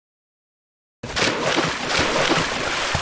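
Water rushes and churns close by.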